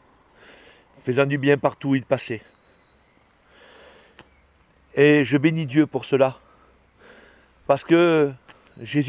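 An older man speaks with animation in short bursts, close to the microphone.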